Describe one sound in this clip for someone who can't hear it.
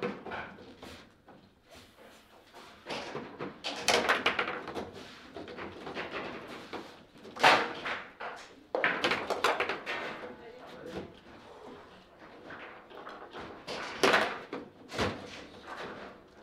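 Foosball rods rattle and the ball clacks against plastic players.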